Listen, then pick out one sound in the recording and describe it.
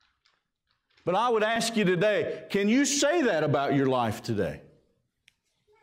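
A middle-aged man preaches with animation through a microphone in a large echoing hall.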